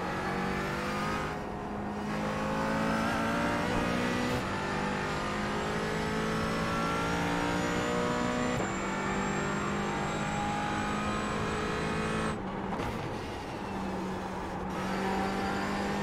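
A racing car engine roars at high revs, climbing and dropping as the gears shift.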